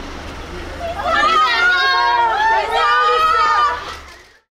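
A crowd of young women screams excitedly close by.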